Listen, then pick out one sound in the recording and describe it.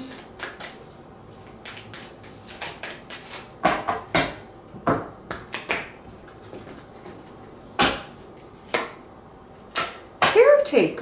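Cards tap and shuffle on a table.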